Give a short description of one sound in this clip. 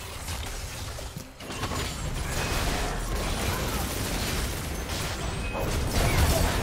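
Game spells crackle and explode in quick bursts.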